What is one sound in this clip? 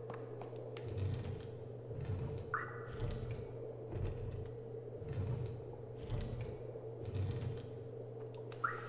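A wooden crate scrapes in short pushes across a hard floor.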